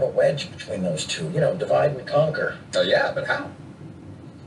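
A second man answers briefly, heard through a television speaker.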